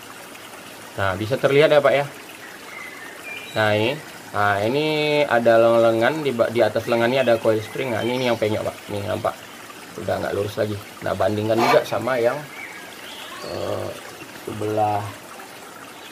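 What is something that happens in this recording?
A man speaks calmly close by, explaining.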